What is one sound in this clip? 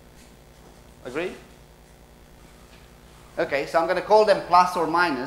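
A young man speaks through a microphone, lecturing with animation.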